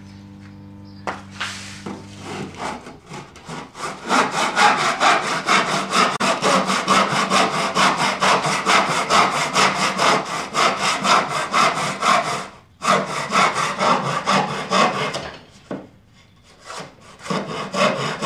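A hand saw cuts through wood with quick, steady back-and-forth strokes.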